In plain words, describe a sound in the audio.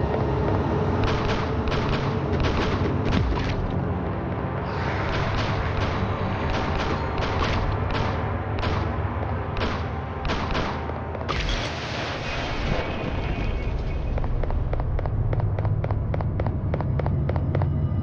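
Rapid gunfire crackles in a game.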